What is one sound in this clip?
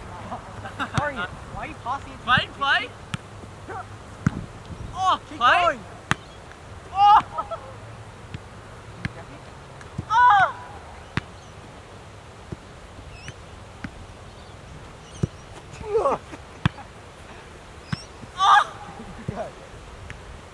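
Boys call out to each other outdoors.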